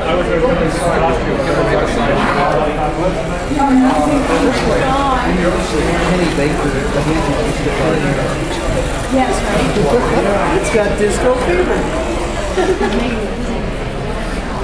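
A small robot whirs as it rolls across the floor.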